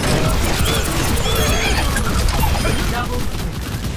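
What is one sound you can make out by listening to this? Game explosions and energy blasts crackle loudly.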